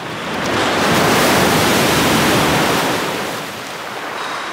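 A sea wave crashes and breaks onto the shore.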